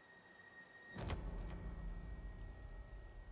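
A monster strikes with a heavy booming crash.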